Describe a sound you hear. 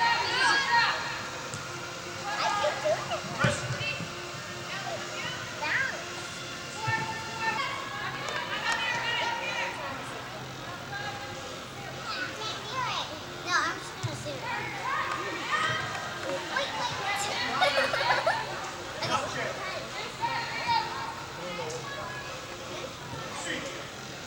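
Young women shout and call out to each other in a large echoing hall.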